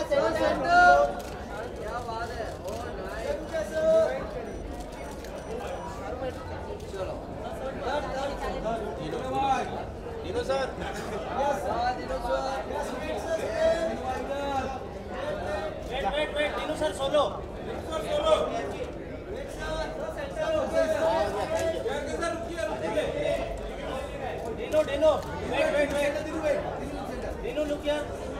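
A crowd of men and women talk and call out loudly nearby.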